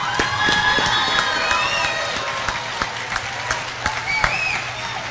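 People applaud in a large echoing hall.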